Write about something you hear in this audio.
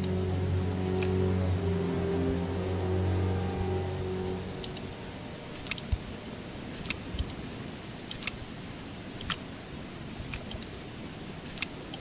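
A puzzle tile clicks sharply each time it turns.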